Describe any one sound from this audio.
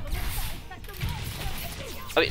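A crossbow bolt whooshes as it is fired.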